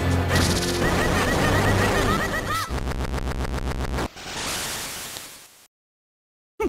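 Retro video game sound effects burst and chime during a boss battle.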